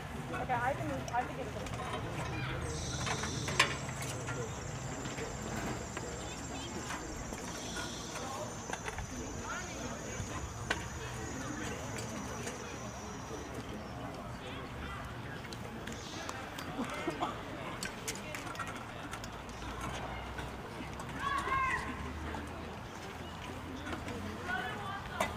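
A woman speaks to a group outdoors.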